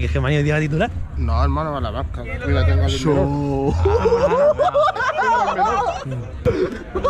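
Another young man shouts back with animation.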